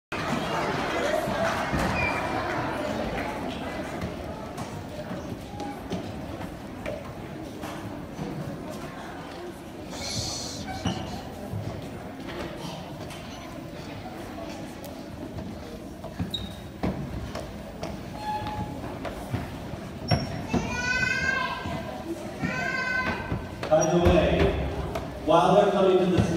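A crowd of children chatters in an echoing hall.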